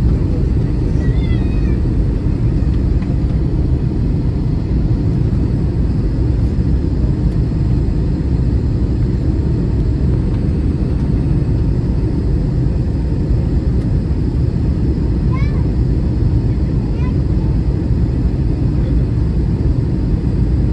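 A jet engine roars steadily in a loud, deep, constant rush inside the aircraft cabin.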